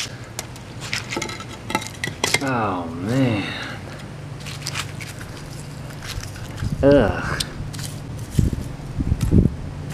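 Fingers crackle and crunch a brittle crust.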